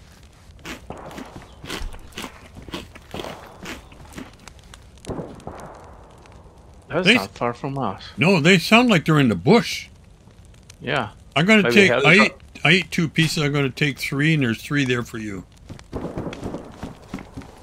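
A wood fire crackles in a fireplace.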